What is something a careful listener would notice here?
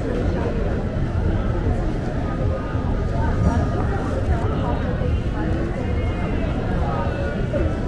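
A crowd of people chatters nearby on a busy street.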